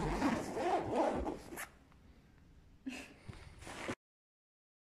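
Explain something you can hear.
Fabric rustles as hands handle it.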